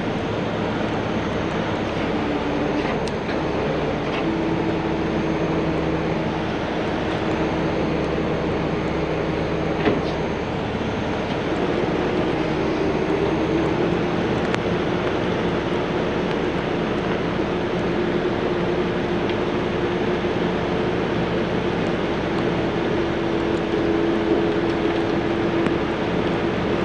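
A heavy truck engine idles with a steady low rumble.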